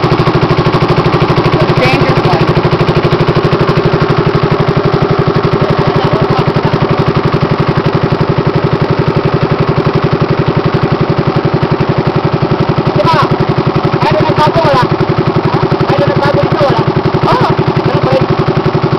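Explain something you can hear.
A boat engine drones steadily and throbs.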